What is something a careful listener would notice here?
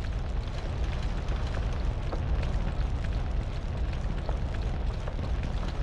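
Footsteps tread steadily on hard ground.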